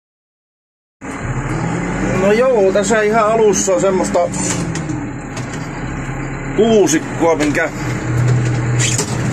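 A machine's diesel engine rumbles steadily, heard from inside its cab.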